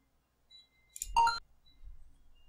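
A short electronic click sounds.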